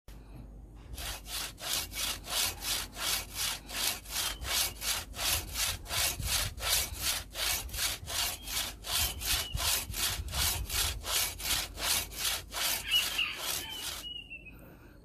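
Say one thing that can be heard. A hand saw cuts through wood with quick, rhythmic strokes.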